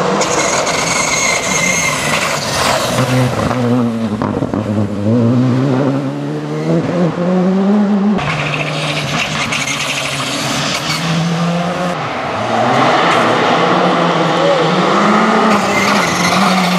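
A rally car engine roars loudly, revving up and down through the gears.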